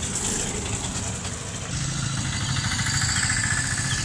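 A three-wheeled taxi engine putters past.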